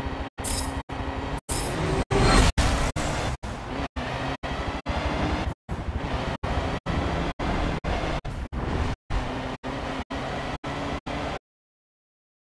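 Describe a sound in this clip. A racing truck's engine roars and revs higher as it speeds up.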